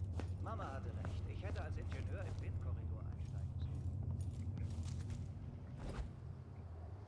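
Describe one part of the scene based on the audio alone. Footsteps thud on stairs and a wooden floor, then crunch on gravel.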